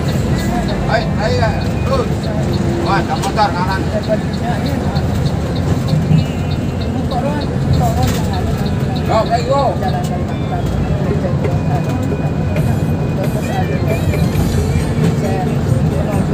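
A bus engine rumbles steadily while driving along a road.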